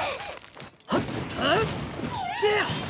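Fiery blows strike with sharp bursts.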